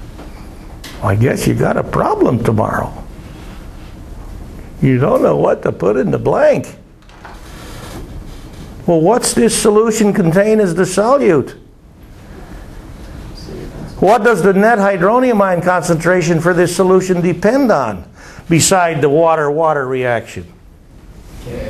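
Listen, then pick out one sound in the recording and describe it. An elderly man speaks calmly in bursts, with pauses between them.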